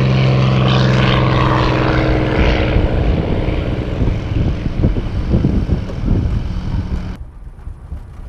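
A small propeller plane's engine drones loudly up close.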